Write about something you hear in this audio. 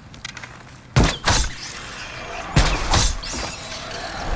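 A sword slashes and strikes an enemy.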